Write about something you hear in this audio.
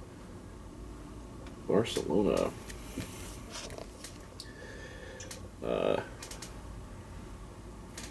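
A cardboard sleeve rustles as a man handles it.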